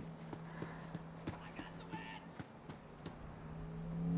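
Footsteps crunch quickly on dry ground.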